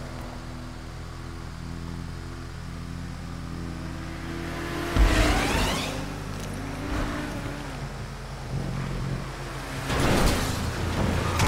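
A vehicle engine hums steadily and revs.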